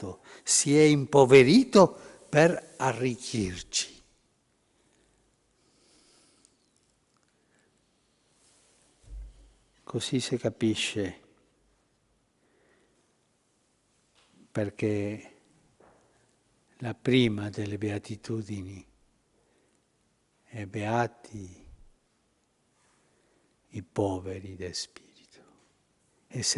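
An elderly man speaks slowly and with feeling through a microphone, with long pauses.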